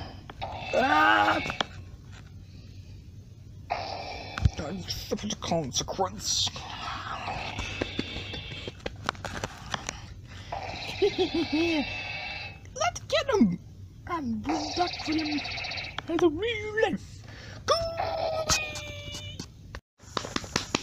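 Cartoon voices and sound effects play through a small tinny speaker.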